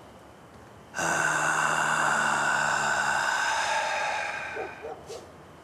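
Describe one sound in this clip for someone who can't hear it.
A middle-aged man lets out a long, loud drawn-out cry.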